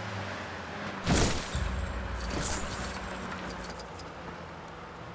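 Coins jingle as they are collected.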